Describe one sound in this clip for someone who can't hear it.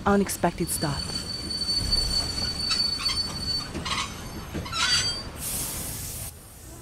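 A train rumbles by, its wheels clattering and squealing on the rails.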